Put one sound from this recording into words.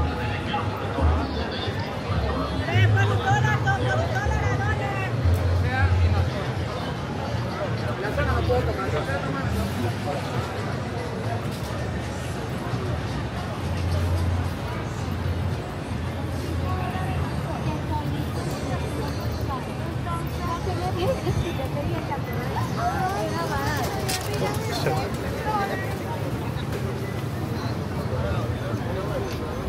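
Footsteps shuffle on pavement.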